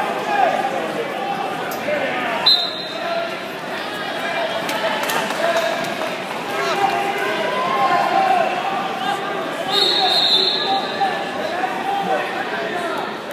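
A crowd of spectators shouts and cheers in a large echoing gym.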